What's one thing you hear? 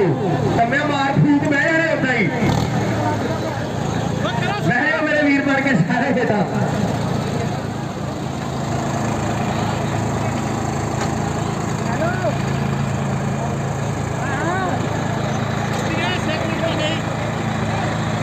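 Tractor engines rumble and roar steadily.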